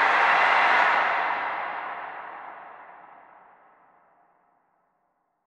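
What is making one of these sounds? A large crowd cheers loudly in a big hall, then fades away.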